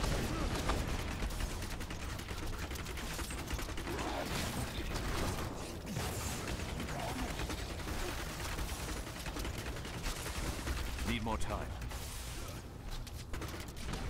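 Video game spell blasts and impacts crackle through a fight.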